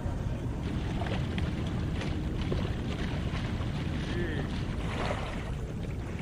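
Paddles dip and splash softly in calm water.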